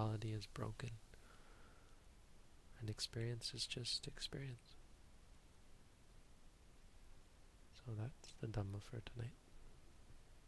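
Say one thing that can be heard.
A young man speaks calmly and slowly, close to a microphone, with long pauses.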